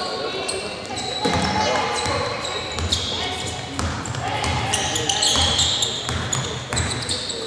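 Sneakers squeak sharply on a hardwood court in a large echoing hall.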